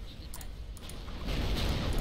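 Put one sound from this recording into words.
An electric bolt crackles loudly.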